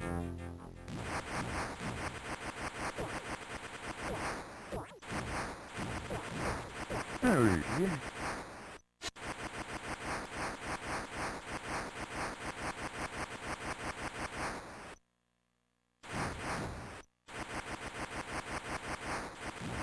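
Arcade game music plays with a fast, pulsing beat.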